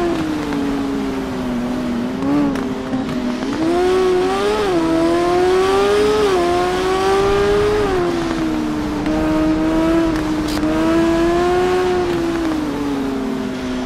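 A motorcycle engine roars at speed, its pitch rising and falling as gears shift.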